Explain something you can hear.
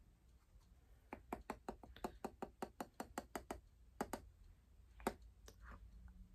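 A brush taps and swirls softly in a jar.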